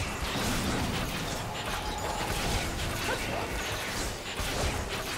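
Fantasy game spells whoosh and blast in a busy battle.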